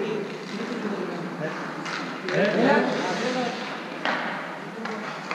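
A man speaks loudly in a large echoing hall.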